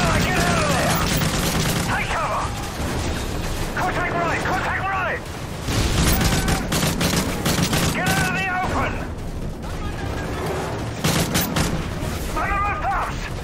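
A rifle fires rapid shots in bursts.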